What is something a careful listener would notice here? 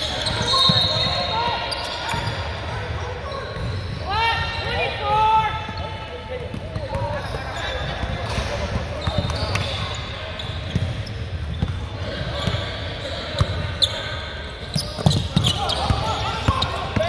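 A crowd of young people shouts and cheers in a large echoing gym.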